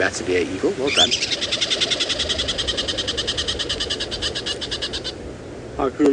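A squirrel chatters with a rapid, repeated clicking call.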